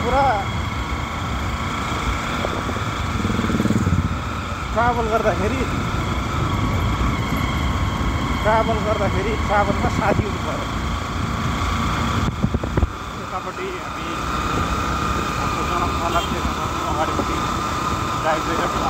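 A middle-aged man speaks close to the microphone.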